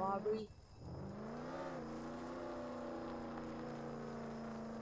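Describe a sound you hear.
A car engine revs up and hums steadily.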